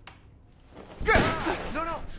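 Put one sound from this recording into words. A gunshot bangs loudly at close range.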